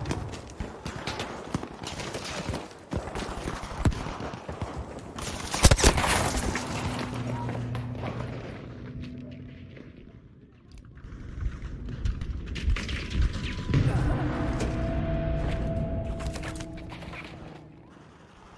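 Explosions rumble in a battle.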